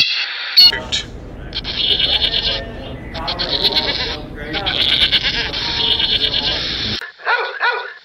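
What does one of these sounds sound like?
A herd of goats bleats loudly.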